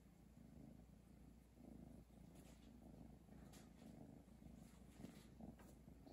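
A small plastic toy wheel rattles softly as a cat paws at it.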